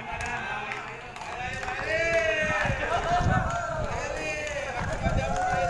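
A crowd of men and women chatter nearby, outdoors.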